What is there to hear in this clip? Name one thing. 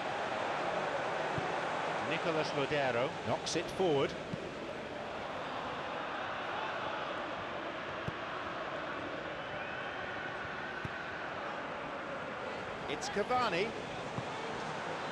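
A stadium crowd roars steadily throughout.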